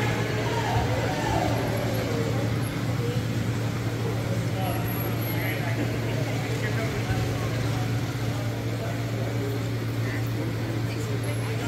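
Electric wheelchairs hum across a large echoing gym floor.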